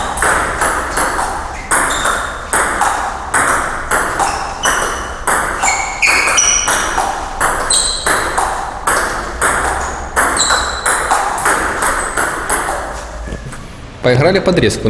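A ping-pong ball clicks rapidly back and forth between paddles and a table.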